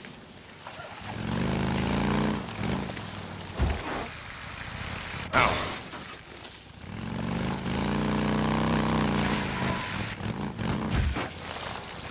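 A motorcycle engine revs up and idles.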